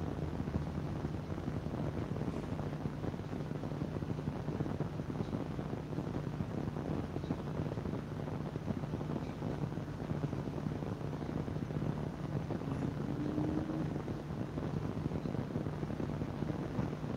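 A desk fan hums steadily.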